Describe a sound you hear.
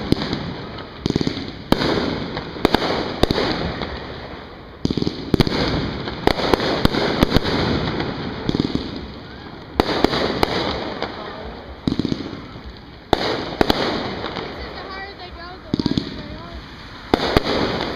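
Fireworks crackle and sizzle.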